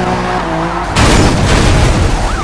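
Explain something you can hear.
A car smashes into a pole with a loud crash.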